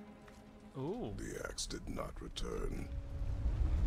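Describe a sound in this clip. A deep-voiced man speaks gruffly nearby.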